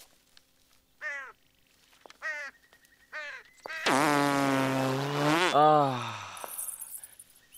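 A young man sings out loudly in short calls and then a long, drawn-out note.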